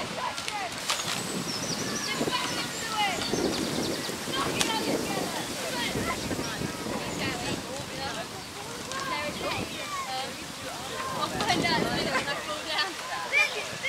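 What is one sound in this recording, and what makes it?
Oars dip and splash rhythmically in water.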